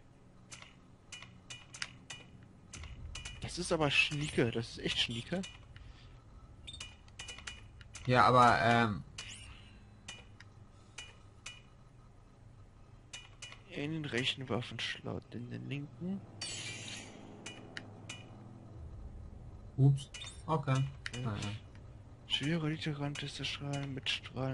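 Short electronic menu clicks and blips sound repeatedly.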